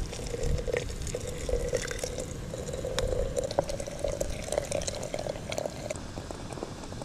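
Hot water pours and splashes into a glass teapot.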